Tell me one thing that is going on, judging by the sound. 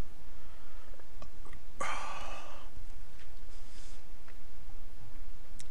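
A man talks casually into a microphone, close by.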